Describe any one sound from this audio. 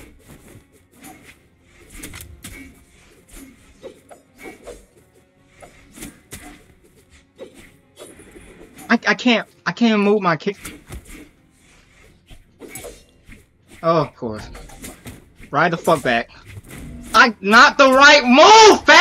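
Swords clash and whoosh in a fast video game fight.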